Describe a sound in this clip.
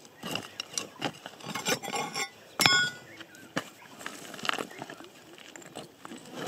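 A large rock is shifted by hand, scraping and knocking on stony ground.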